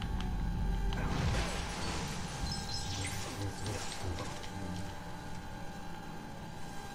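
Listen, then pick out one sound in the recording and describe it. Lightsabers hum and clash with crackling sparks.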